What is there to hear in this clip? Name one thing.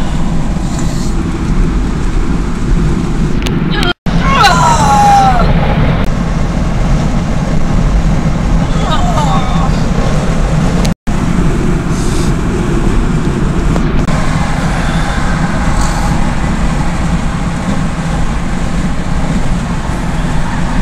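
Tyres and engine rumble steadily inside a moving car.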